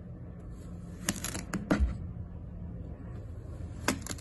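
A knife blade taps and scrapes against a wooden board.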